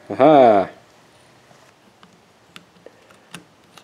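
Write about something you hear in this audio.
A small button clicks as it is pressed.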